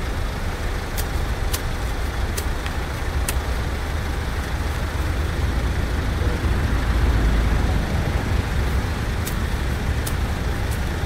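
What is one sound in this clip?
Pruning shears snip sharply.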